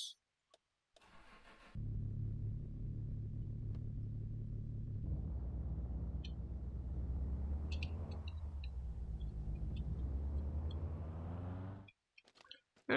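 A car engine starts, idles, then revs up and down while driving.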